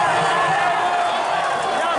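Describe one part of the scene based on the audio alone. A man close by cheers and shouts.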